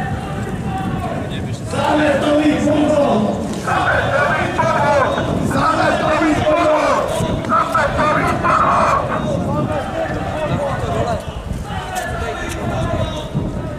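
A group of men chant loudly outdoors.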